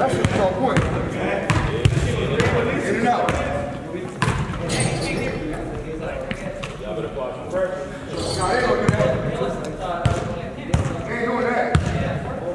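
A basketball bounces on a hard wooden floor in an echoing gym.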